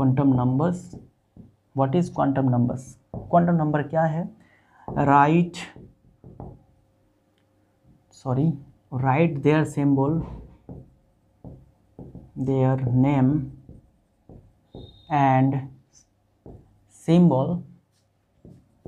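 A young man speaks calmly, like a teacher explaining, close by.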